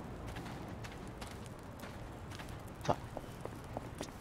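Footsteps tap on hard ground.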